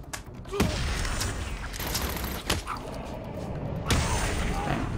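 Heavy blows and whip cracks land in a scuffle.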